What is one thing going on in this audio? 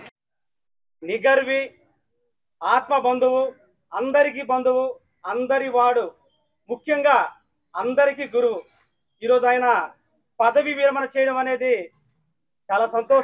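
A man speaks with animation into a microphone over a loudspeaker.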